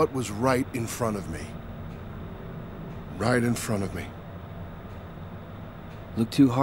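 A young man talks calmly into a nearby microphone.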